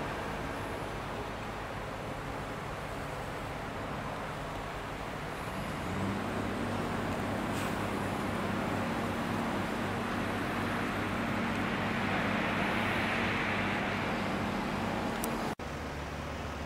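A heavy truck engine rumbles as the truck rolls slowly outdoors.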